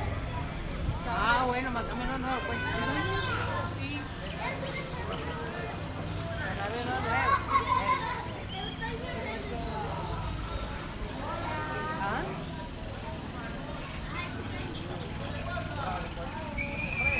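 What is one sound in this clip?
Men call out and talk across an open field.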